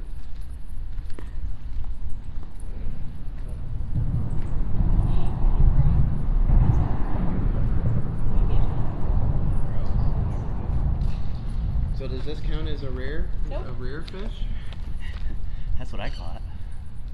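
Water laps gently against a stone wall.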